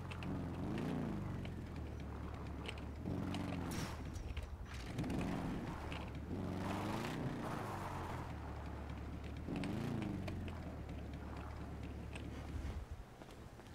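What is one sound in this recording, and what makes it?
A motorbike engine revs up and down repeatedly.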